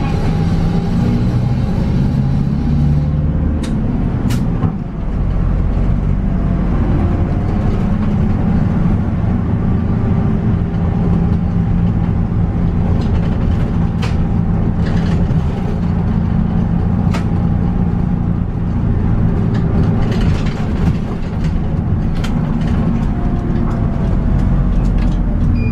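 A diesel city bus engine hums, heard from inside the bus as it drives along.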